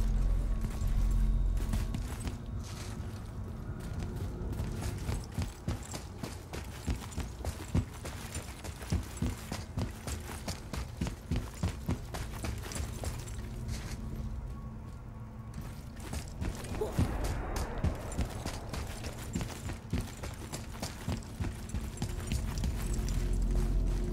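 Heavy footsteps thud on a hard floor in a large echoing hall.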